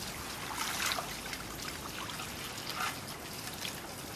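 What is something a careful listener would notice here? Water pours from a hose into a metal basin.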